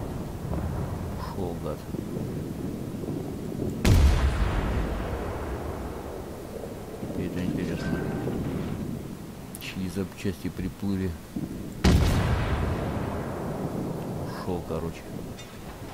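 Waves wash against a rocky shore.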